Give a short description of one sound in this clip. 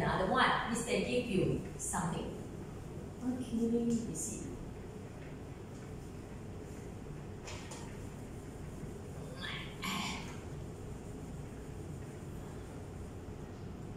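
An eraser rubs against a whiteboard.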